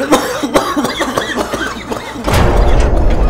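A man groans softly in pain.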